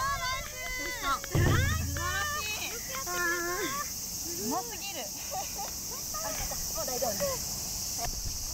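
Young women cheer and shout excitedly nearby.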